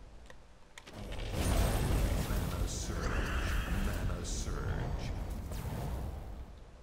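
Game chimes and sparkling effects ring out as gems burst.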